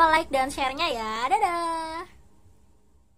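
A young woman speaks cheerfully and with animation close by.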